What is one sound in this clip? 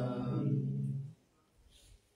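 Men chant together in low, steady voices.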